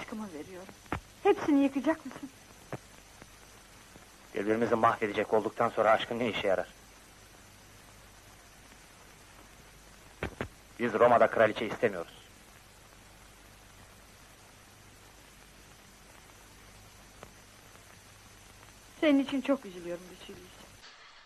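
A woman speaks softly and tenderly up close.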